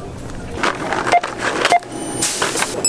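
A checkout scanner beeps as an item is scanned.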